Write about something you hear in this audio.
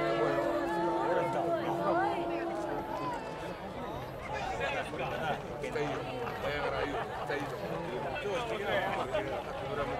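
Fireworks pop faintly in the distance.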